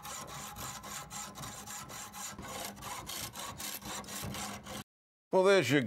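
A hand saw rasps rhythmically through metal.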